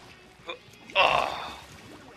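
Paint splatters with a loud wet splash.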